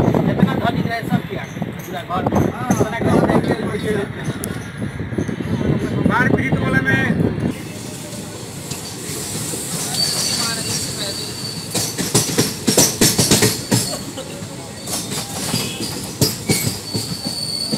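A passenger train rolls along tracks.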